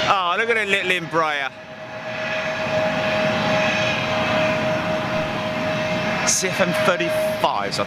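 A jet engine whines steadily as an airliner taxis nearby.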